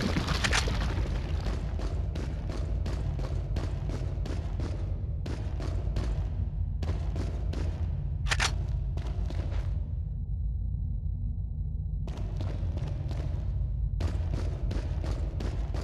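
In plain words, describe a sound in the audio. Footsteps crunch steadily over rocky ground.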